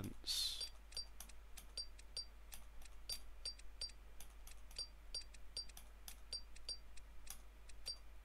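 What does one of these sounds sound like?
A game plays short, bright chimes in quick succession.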